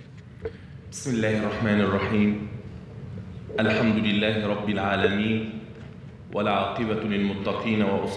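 A man speaks calmly and formally into a microphone in a large echoing hall.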